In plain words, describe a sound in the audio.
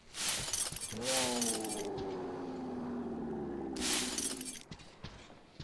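Loose items rustle and clatter as they are gathered up.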